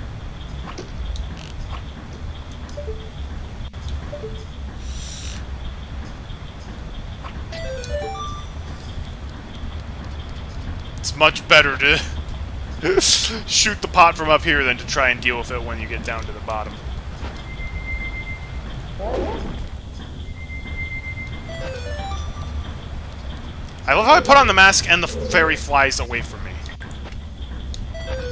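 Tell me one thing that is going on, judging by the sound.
Electronic game sound effects chime and blip.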